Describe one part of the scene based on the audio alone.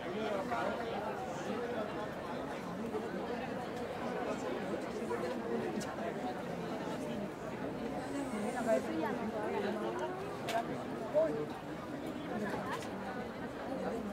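A crowd of men and women chatters and murmurs close by.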